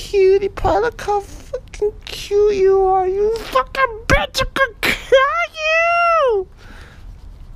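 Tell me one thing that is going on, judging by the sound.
A dog whines loudly up close.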